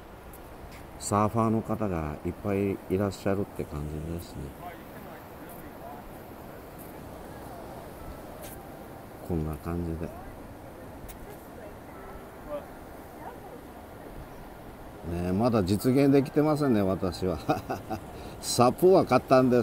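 Waves wash and churn on the sea.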